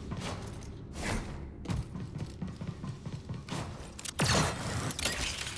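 A character's boots thud as the character lands and runs along a wall.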